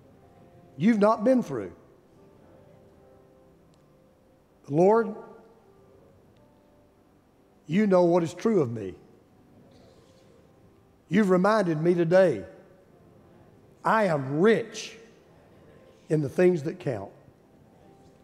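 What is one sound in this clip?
An older man speaks slowly through a microphone, in short phrases with long pauses.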